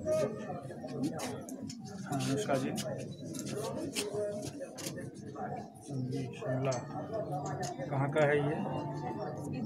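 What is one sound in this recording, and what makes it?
Several men talk nearby in a small crowd.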